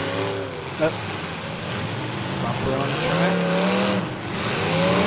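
Car engines rev loudly outdoors, rising and falling.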